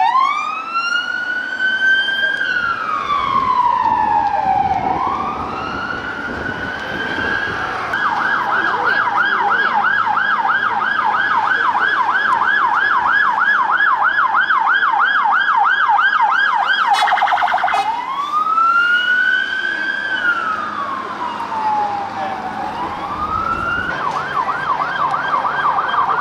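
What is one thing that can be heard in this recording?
A police siren wails close by, rising and falling slowly, then switching to a fast warble.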